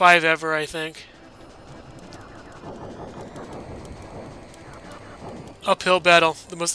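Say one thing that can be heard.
Video game laser blasts fire in quick bursts.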